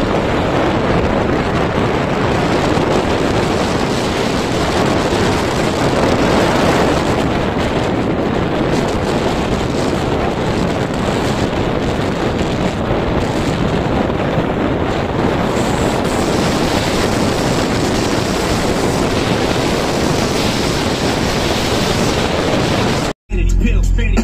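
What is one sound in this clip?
A car drives steadily along a road, with wind and road noise roaring inside.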